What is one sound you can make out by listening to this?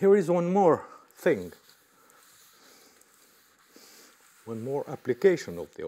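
An eraser rubs across a chalkboard.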